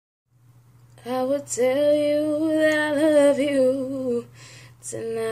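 A young woman sings close to a phone microphone, holding long notes.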